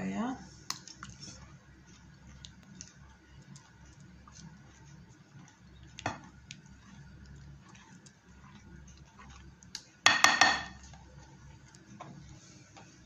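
A wire whisk clicks and taps against a bowl while stirring batter.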